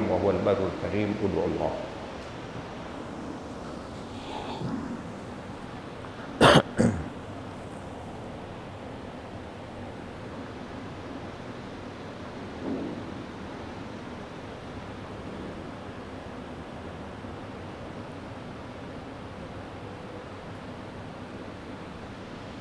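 A large crowd murmurs softly in a big echoing hall.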